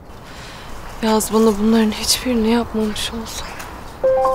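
A young woman speaks quietly and sadly nearby.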